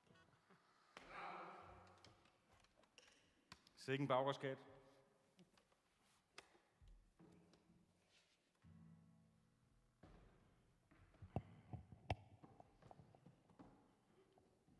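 A man speaks into a microphone in a reverberant hall.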